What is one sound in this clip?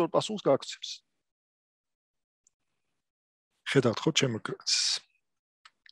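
A man speaks calmly through an online call microphone, in short bursts.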